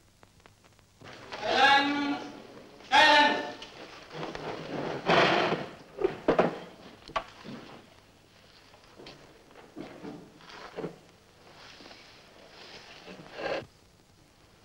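A crowd of men shouts and murmurs in a large echoing room.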